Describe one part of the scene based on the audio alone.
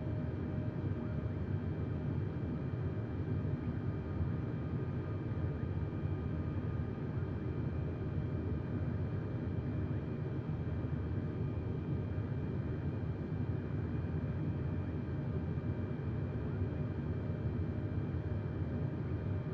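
Jet engines hum and roar steadily.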